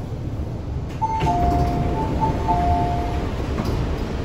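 A door chime beeps in a short repeated pattern.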